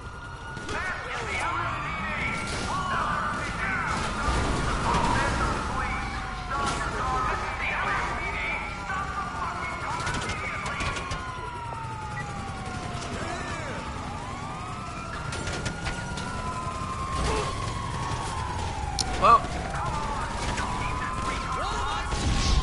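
Gunshots crack sharply now and then.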